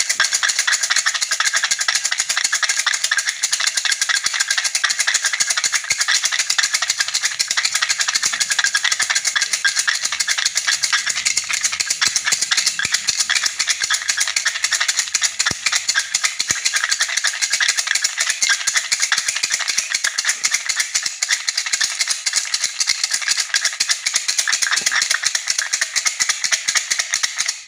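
Wooden sticks rattle quickly and steadily inside a container as it is shaken.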